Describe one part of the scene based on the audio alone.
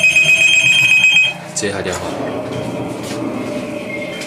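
A telephone handset clatters onto its cradle.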